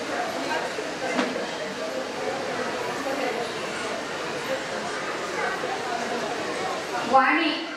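Several adults chatter at once.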